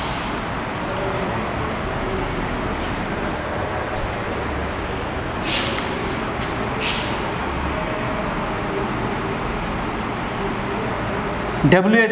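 A man speaks steadily in a lecturing tone.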